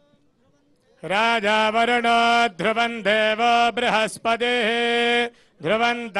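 A man chants loudly in a sustained, melodic voice.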